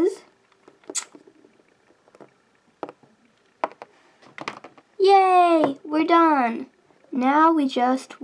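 Small plastic toys knock lightly against a hard surface.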